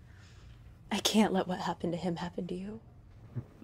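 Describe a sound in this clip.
A young woman speaks close by in a pleading, emotional tone.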